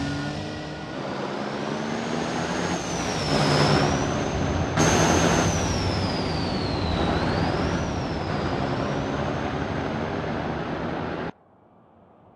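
A heavy truck engine rumbles steadily as the truck drives by.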